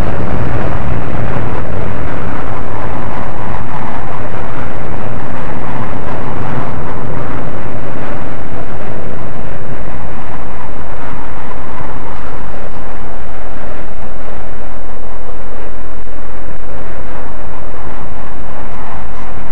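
Jet engines roar loudly.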